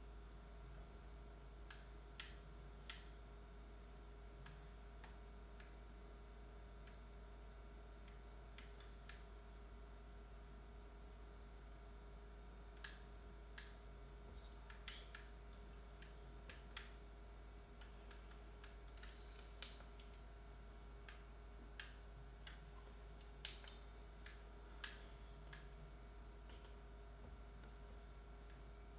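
A television plays faint video game sounds with soft clicks and taps.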